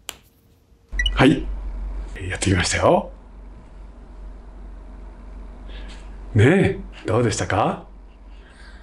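An elderly man speaks cheerfully and close up.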